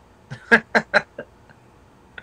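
A man laughs heartily close to a phone microphone.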